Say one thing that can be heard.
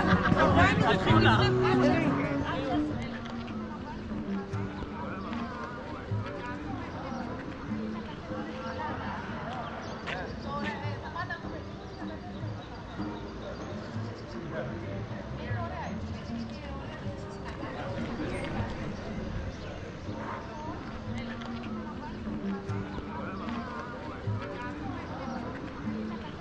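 Footsteps walk steadily on paving stones.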